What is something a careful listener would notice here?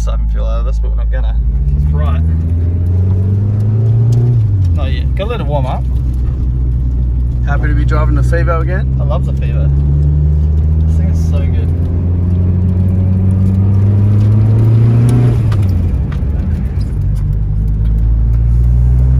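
A car engine hums loudly up close, rising and falling as the car speeds up and changes gear.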